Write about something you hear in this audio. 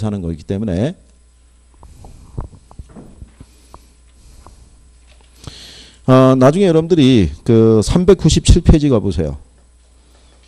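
A middle-aged man speaks into a microphone in short, animated bursts.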